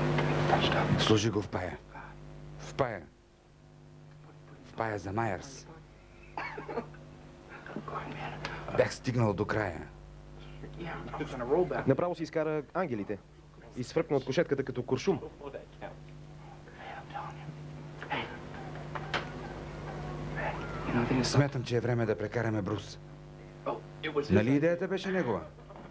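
Another young man talks and asks questions close by.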